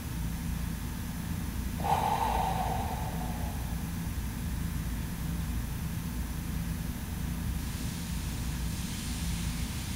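A phone plays a low, steady thumping heartbeat.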